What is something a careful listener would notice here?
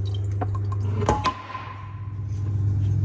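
A metal cup clanks against a hard countertop and rings briefly.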